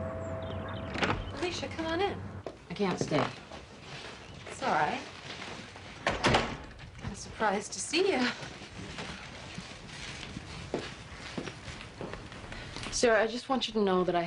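A woman speaks in a low, tense voice.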